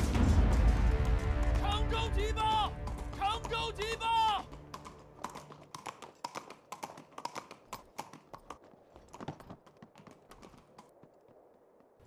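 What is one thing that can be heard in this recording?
Horse hooves gallop on hard ground.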